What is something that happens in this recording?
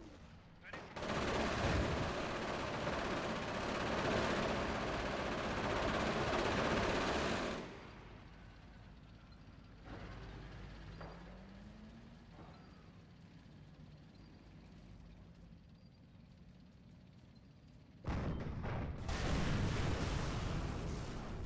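Explosions boom and rumble in a loud battle.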